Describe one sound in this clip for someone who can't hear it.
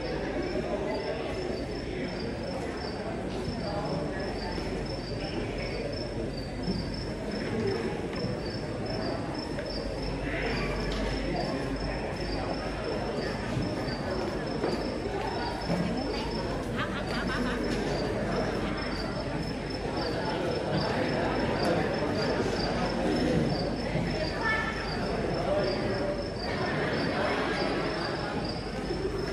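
A woman sings into a microphone in a large echoing hall.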